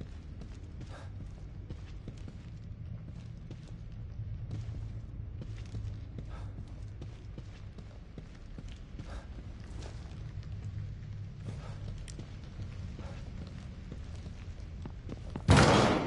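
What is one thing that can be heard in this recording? Footsteps tread softly on a carpeted floor.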